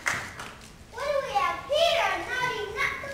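Young children sing together.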